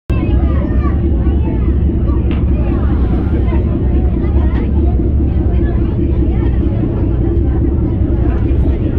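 Women and children chatter nearby.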